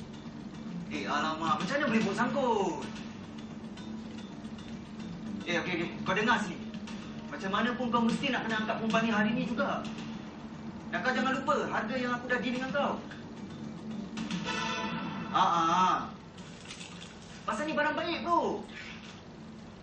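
A young man talks angrily on a phone, close by.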